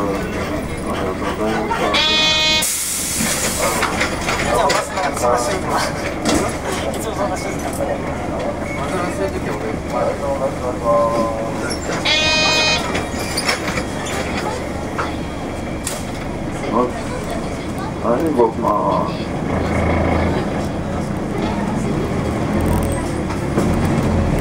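Cars drive past close by on a street.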